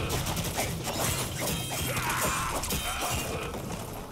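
A blade swishes through the air in swift slashes.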